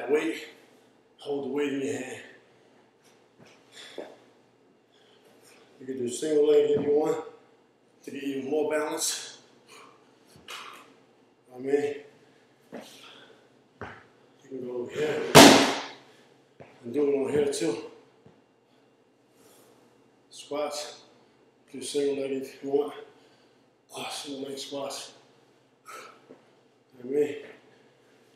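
Shoes thump onto a rubber balance dome.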